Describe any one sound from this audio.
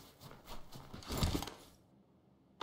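A body thumps while climbing through a window.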